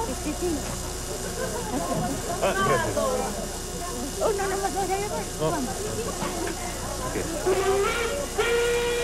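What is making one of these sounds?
An elderly woman talks nearby.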